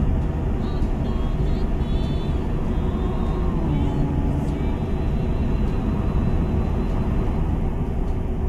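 Tyres roll over a snowy road.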